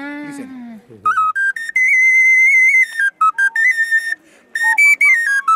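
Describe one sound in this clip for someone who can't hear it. A small clay whistle plays a high, piercing melody close by.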